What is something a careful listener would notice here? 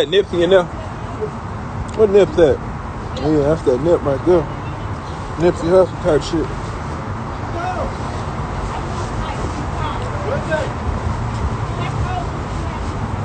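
A young man talks with animation close to a phone microphone.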